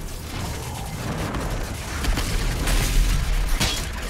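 A creature is blown apart with a wet splatter.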